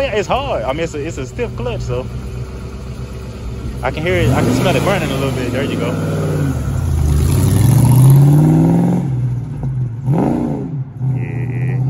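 A car engine idles and revs up and down loudly.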